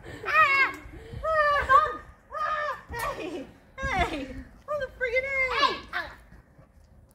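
Young girls talk and laugh excitedly close by.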